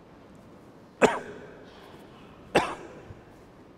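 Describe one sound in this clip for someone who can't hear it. A middle-aged man coughs twice, echoing around a large hall.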